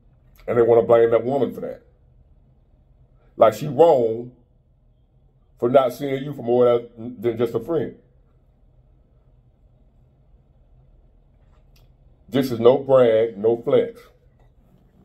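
A man speaks calmly and closely into a microphone, with pauses between phrases.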